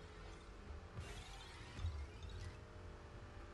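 A rocket boost roars briefly.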